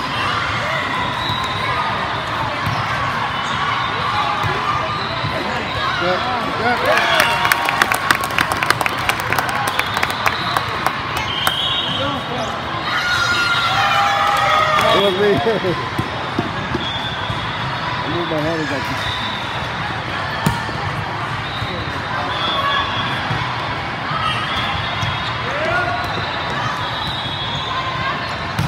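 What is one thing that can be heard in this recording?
A large crowd murmurs and calls out in a big echoing hall.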